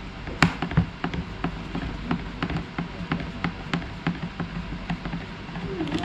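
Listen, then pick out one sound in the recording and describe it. A screwdriver clicks as it turns a small screw in plastic.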